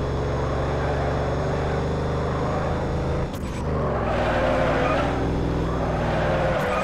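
Tyres screech as a car drifts.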